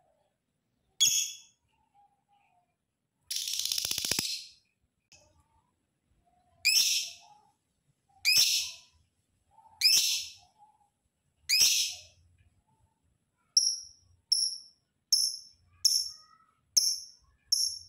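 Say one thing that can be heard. A lovebird gives loud, sharp, shrill chirps, coming faster toward the end.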